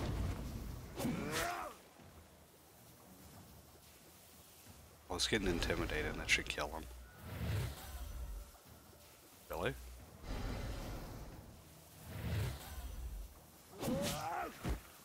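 An axe strikes a foe with a heavy thud.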